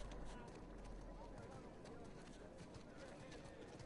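A crowd of men murmurs and jeers in the distance.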